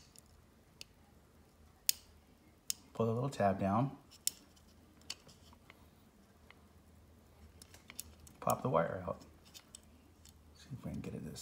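A metal pick clicks and scrapes against a plastic connector.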